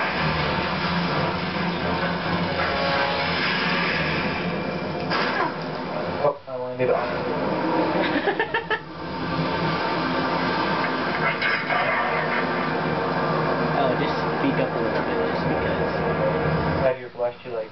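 Video game sound effects and music play loudly through a television speaker.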